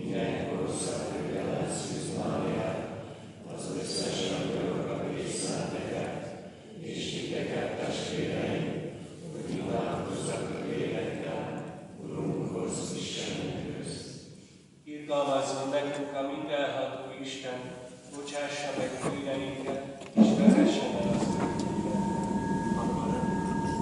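A man chants slowly through a microphone in a large, echoing hall.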